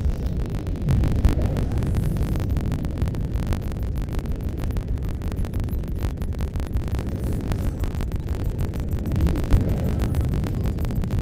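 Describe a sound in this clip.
A spaceship's engine hums with a low, steady rumble.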